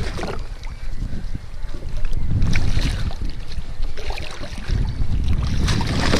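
A fish splashes in the water beside a kayak.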